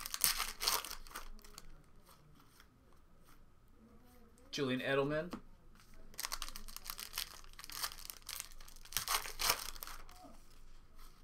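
Foil wrappers crinkle and rustle as they are torn open and handled up close.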